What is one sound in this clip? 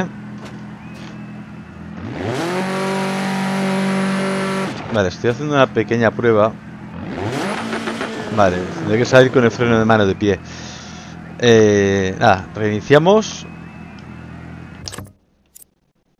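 A car engine idles and revs up loudly, then cuts off.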